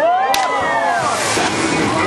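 A rider lands with a splash in a pool.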